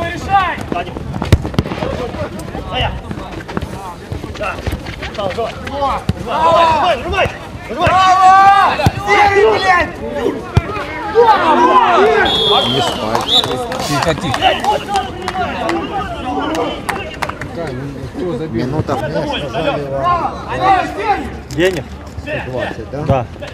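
Young men shout to each other across an outdoor pitch.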